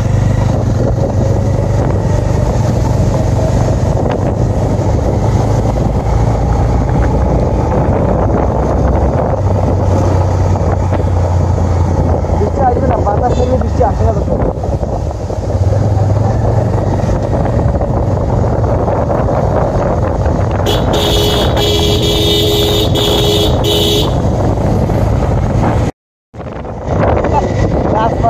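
A vehicle engine hums along a path.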